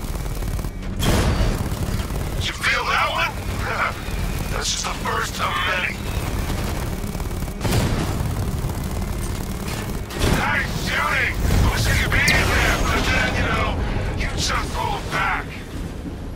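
Cannon fire and explosions boom loudly.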